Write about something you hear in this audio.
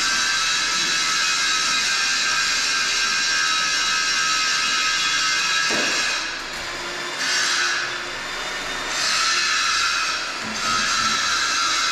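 An air tool whirs and hisses in bursts close by.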